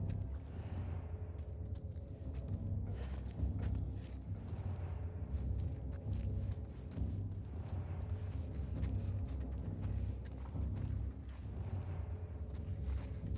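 Footsteps creep softly across a hard floor.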